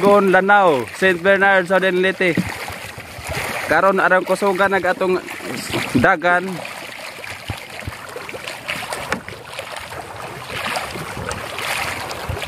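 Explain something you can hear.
A wooden paddle dips and splashes in the water.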